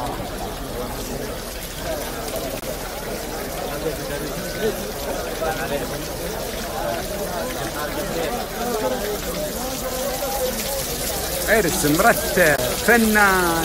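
A crowd of men chat and murmur close by.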